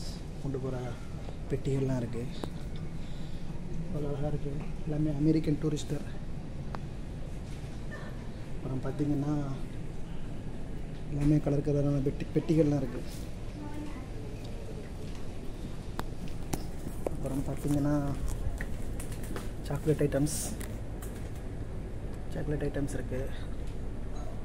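A young man talks calmly close to a phone microphone, pausing often.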